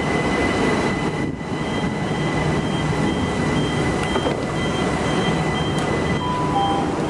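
A train door warning beeps repeatedly.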